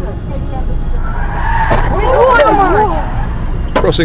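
A vehicle crashes with a loud bang.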